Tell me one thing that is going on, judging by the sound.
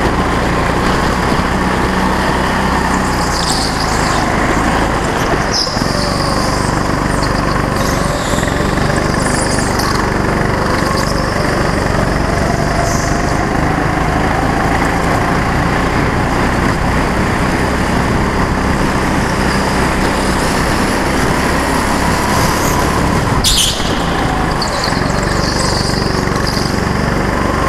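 A go-kart engine drones loudly and steadily close by, rising and falling in pitch.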